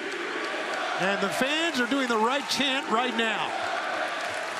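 A crowd chants loudly in unison.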